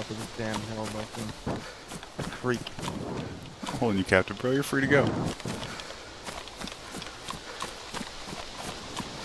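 Footsteps swish through tall dry grass at a steady walking pace.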